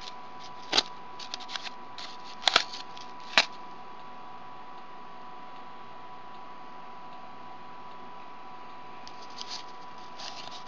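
Cardboard rustles and taps as hands handle it.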